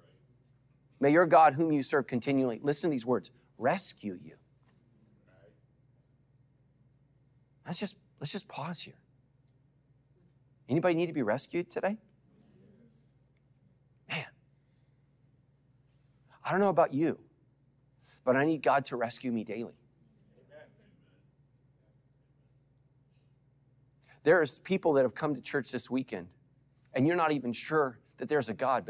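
A man speaks with animation into a microphone, pausing often.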